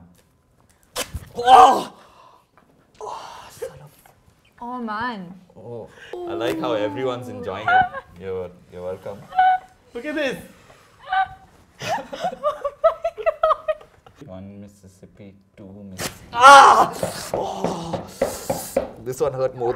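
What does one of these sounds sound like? A young woman laughs loudly close by.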